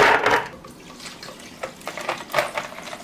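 Milk splashes as it pours over ice.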